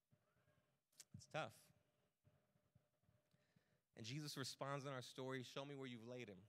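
A man speaks with animation into a microphone, heard through loudspeakers in a large room.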